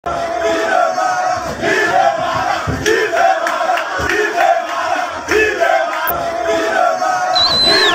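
A large crowd chants loudly together outdoors.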